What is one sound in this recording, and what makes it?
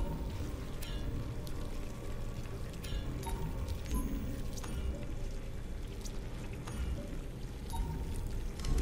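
Soft electronic clicks sound as menu items are selected.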